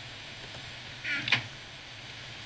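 A wooden chest closes with a soft creak.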